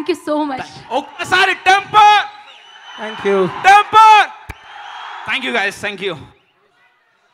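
A young man sings through a microphone.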